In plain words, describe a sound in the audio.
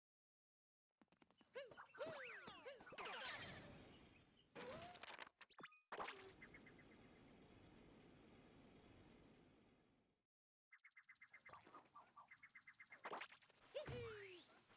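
Cheerful game chimes and jingles play.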